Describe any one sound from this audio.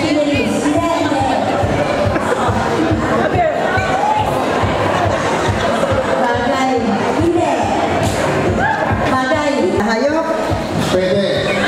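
An older woman speaks calmly into a microphone, heard through a loudspeaker.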